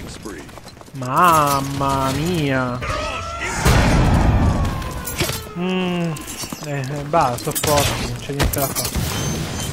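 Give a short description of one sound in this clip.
A man talks into a close microphone with animation.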